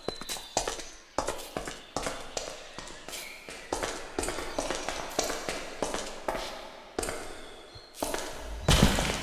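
Footsteps tap quickly and steadily on stone steps.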